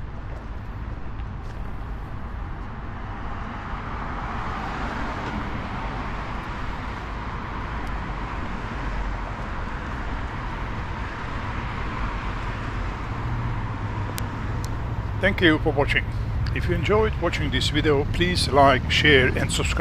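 Cars drive past on a nearby street with a steady rush of traffic.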